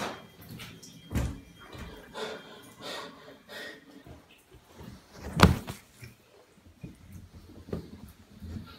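Bare feet thump on a bath mat.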